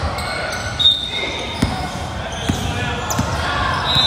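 A basketball bounces on a hard court in an echoing gym.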